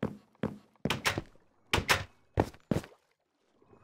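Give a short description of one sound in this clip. A wooden door in a game clacks open and shut several times.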